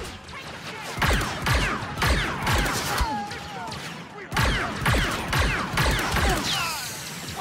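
Rapid gunshots fire in bursts with ricochets.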